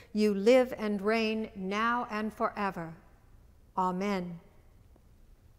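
An elderly woman speaks calmly into a microphone, with a slight echo.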